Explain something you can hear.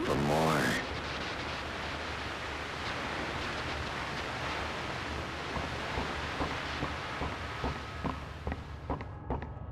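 Radio static hisses steadily.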